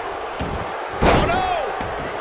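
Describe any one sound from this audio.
A heavy body slams hard onto a wrestling ring mat.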